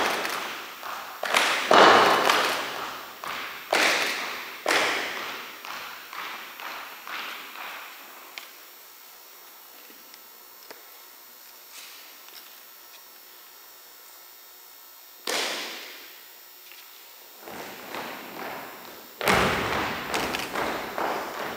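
An audience applauds and cheers in a large echoing hall.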